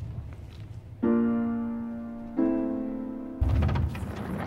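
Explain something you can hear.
Piano notes ring out and slowly fade.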